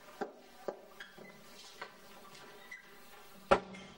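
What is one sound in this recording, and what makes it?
A door shuts with a thud.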